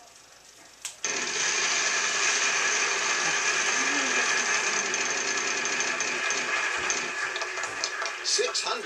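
A prize wheel clicks as it spins.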